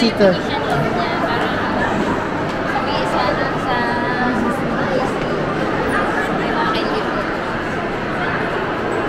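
Many voices murmur in a busy indoor space.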